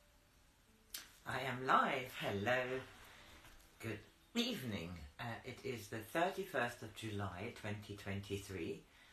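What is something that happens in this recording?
A woman reads aloud calmly and expressively, close by.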